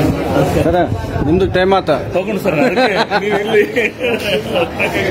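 A man speaks loudly close by.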